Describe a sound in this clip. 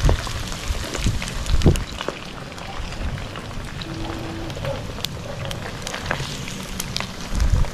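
Hot oil sizzles and crackles steadily as food fries.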